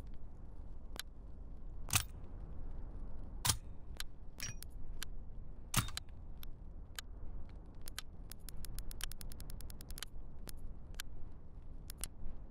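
Short menu clicks tick, sometimes in quick runs.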